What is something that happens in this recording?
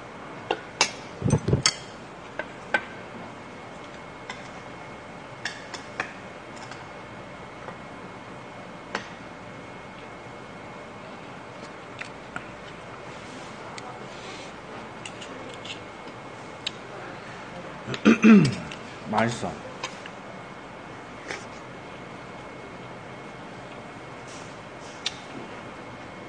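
Metal chopsticks and spoons clink against dishes.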